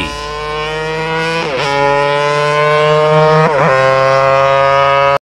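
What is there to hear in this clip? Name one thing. A racing motorcycle engine screams at high revs, dipping briefly with each gear change.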